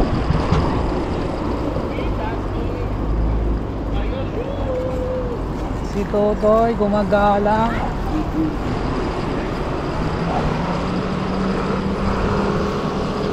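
Bicycle tyres roll over paving.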